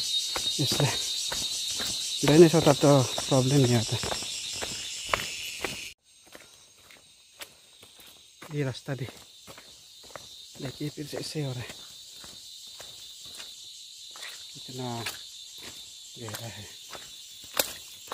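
Footsteps squelch and crunch on a muddy dirt track.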